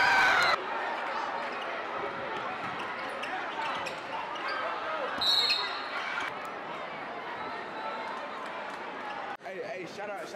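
A large crowd murmurs and cheers in an echoing gym.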